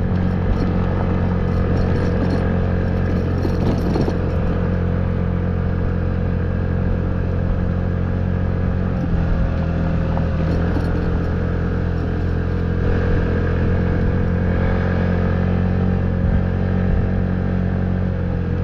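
Tyres roll and crunch over a dirt track.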